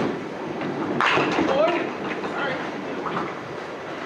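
Pins crash and clatter in a large echoing hall.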